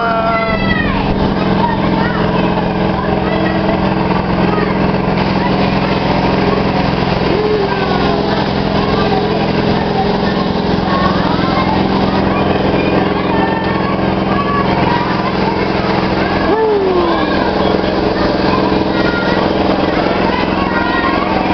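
A carousel's motor hums steadily as the ride turns.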